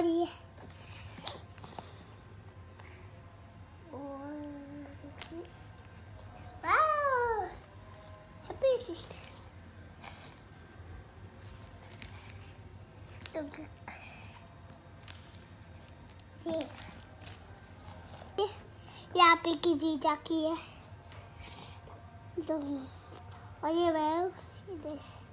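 Stiff album pages rustle and flap as a child turns them.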